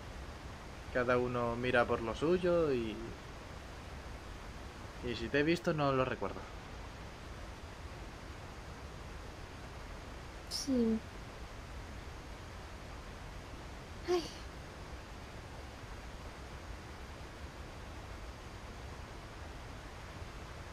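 Water laps gently at a shore.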